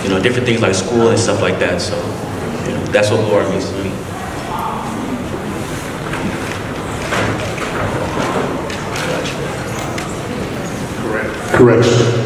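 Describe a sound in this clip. A young man speaks into a microphone through loudspeakers in an echoing hall.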